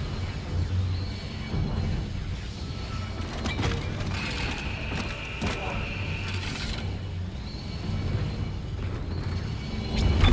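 Heavy metal boots clank on a hard floor.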